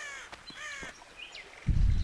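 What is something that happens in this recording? Leaves rustle as a body pushes through a bush.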